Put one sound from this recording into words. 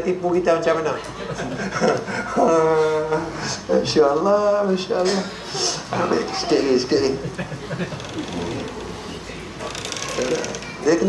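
A middle-aged man speaks with animation into a clip-on microphone.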